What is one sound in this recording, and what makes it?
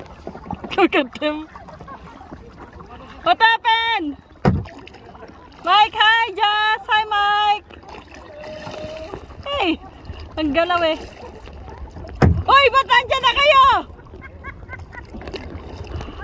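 Kayak paddles splash in the water.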